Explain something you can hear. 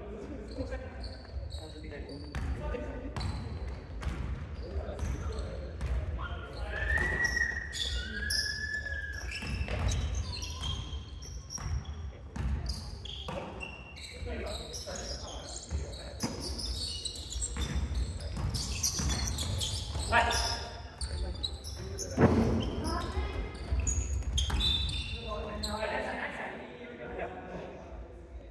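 Young players shout and call to each other across the hall.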